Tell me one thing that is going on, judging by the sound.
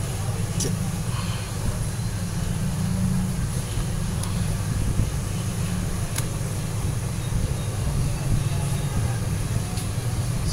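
A cloth rubs and squeaks against a phone.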